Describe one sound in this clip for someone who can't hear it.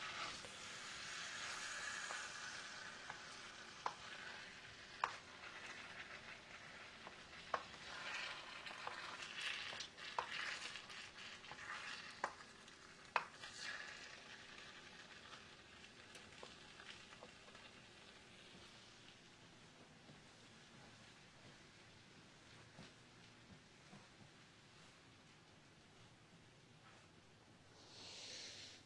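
Food sizzles in a hot pan.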